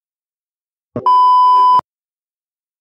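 A steady high test tone beeps briefly.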